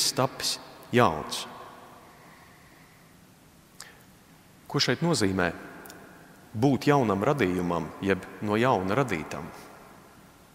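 A man speaks calmly into a microphone in a reverberant room, with pauses between phrases.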